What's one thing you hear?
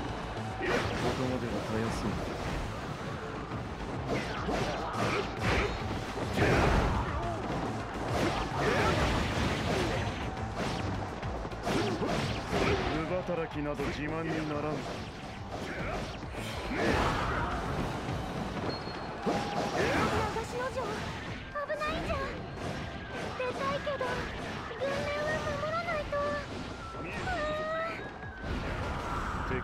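Heavy blasts boom and crackle.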